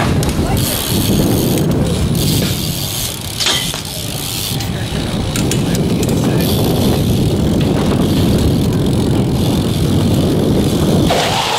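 BMX bike tyres roll over concrete.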